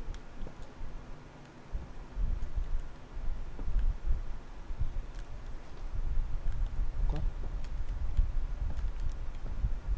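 Slow footsteps thud on a wooden floor.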